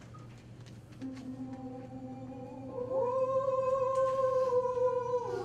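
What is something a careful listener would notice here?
A choir sings sustained notes in a large room.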